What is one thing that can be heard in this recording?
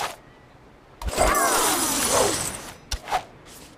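A bright game jingle with sparkling chimes plays.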